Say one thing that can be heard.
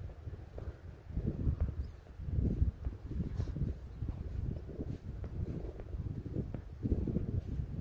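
Tall grass rustles in the wind.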